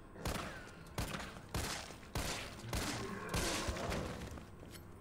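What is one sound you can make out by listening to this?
A handgun fires several loud shots in a row.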